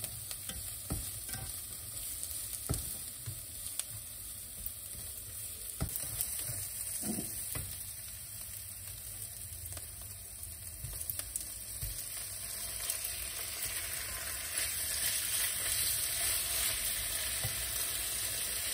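A spatula scrapes and clatters against a frying pan.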